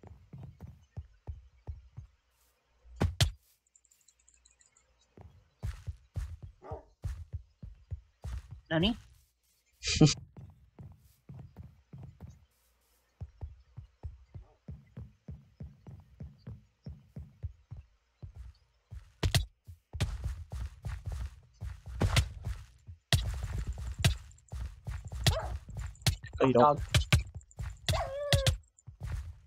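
Footsteps patter quickly on hard ground and wood.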